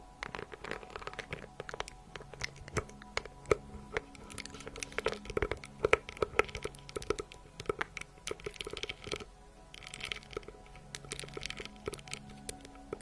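Fingernails tap and scratch on a small handbag close to a microphone.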